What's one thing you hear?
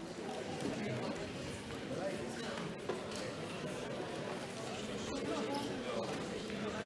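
A crowd of men and women murmurs and chatters in a large echoing hall.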